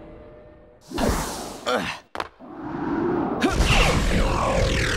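A hoverboard whooshes and hums as it takes off.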